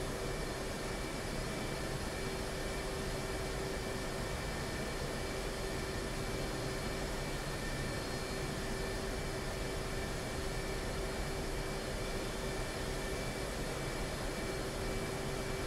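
A jet engine idles with a steady, loud whining roar.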